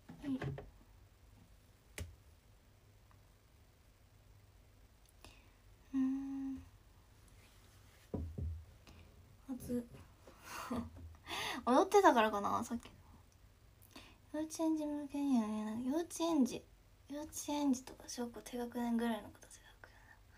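A young woman talks casually and close to a microphone, with pauses.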